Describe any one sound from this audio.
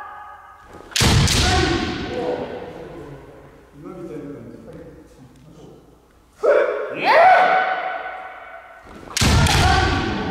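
Bamboo swords strike with sharp cracks that ring out in a large echoing hall.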